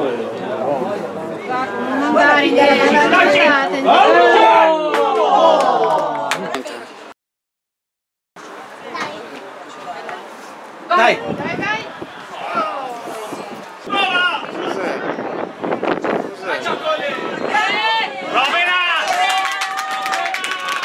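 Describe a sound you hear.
Teenage boys shout to each other across an outdoor football pitch.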